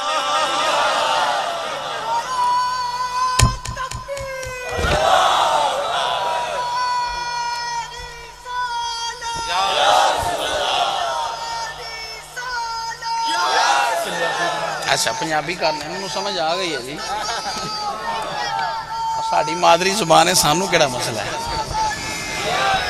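A man sings a devotional chant through a loudspeaker.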